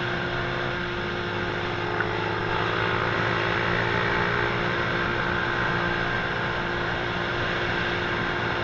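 A motorcycle engine hums steadily at speed, heard up close.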